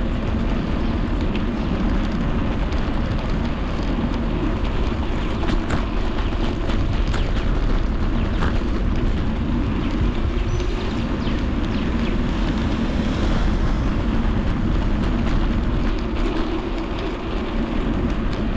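Wind rushes loudly past while riding.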